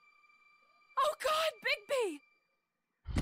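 A woman cries out in alarm.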